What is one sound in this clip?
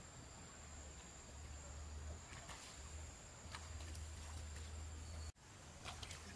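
Water splashes softly as a woman wades through a shallow stream.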